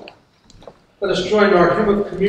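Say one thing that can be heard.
An elderly woman speaks clearly, close by.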